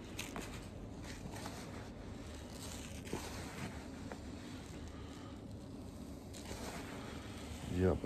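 A hand rustles and stirs through dry seeds.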